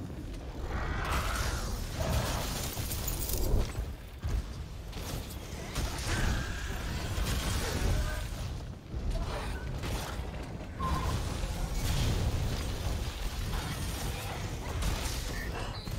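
Heavy weapon blows strike with sharp crashing impacts.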